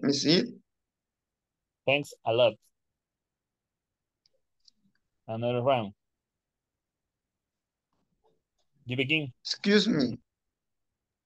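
A young man speaks calmly in short phrases over an online call.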